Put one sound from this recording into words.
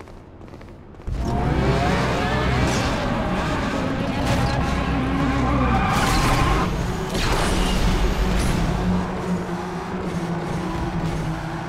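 Race car engines roar at high speed.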